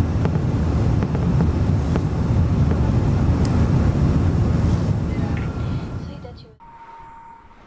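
Jet engines roar steadily with a deep rumble.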